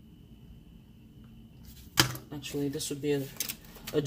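A tape dispenser clicks against paper.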